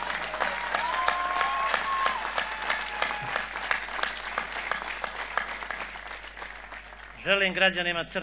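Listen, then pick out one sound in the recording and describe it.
A large crowd cheers and claps outdoors.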